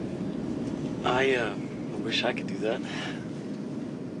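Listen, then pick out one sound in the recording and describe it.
A young man speaks in a friendly way, close by.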